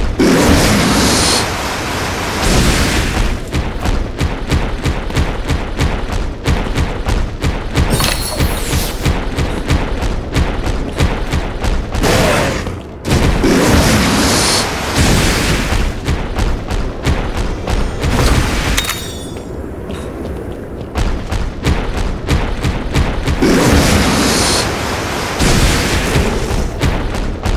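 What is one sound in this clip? Heavy footfalls of a large creature pound quickly on rock.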